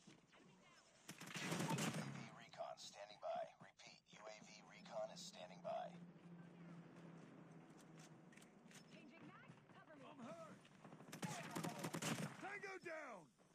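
Gunfire from a rifle rattles in quick bursts.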